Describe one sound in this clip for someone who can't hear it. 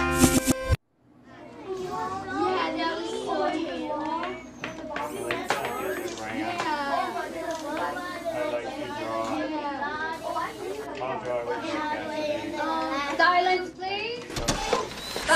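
Young children talk and chatter nearby.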